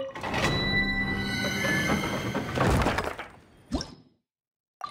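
A heavy stone door rumbles open with a magical whoosh.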